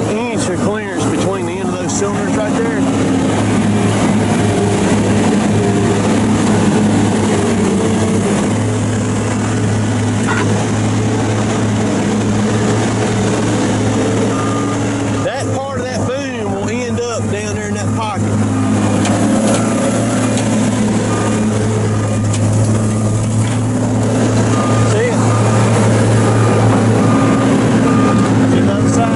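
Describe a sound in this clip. A large diesel engine idles with a steady low rumble close by.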